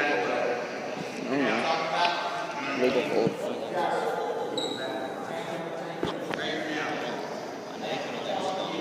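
A crowd of spectators talks and shouts in a large echoing gym.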